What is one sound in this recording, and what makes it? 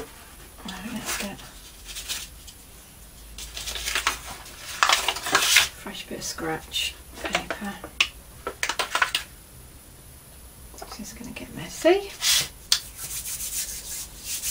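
Crinkled paper rustles and crackles as it is handled.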